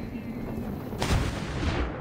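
A figure lands in a pile of hay with a soft rustle.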